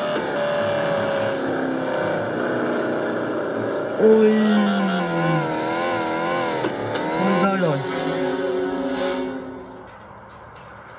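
Upbeat game music plays from a small tablet speaker.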